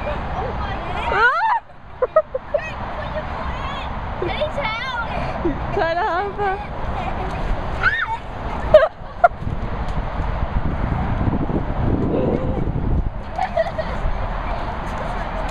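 Young children chatter and squeal excitedly close by.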